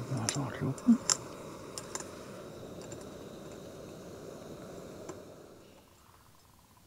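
A camping stove burner hisses steadily, then stops.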